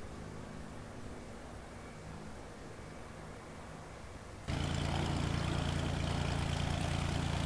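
A small propeller plane's engine hums steadily, then suddenly grows much louder.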